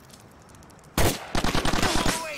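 A sniper rifle fires a single sharp shot.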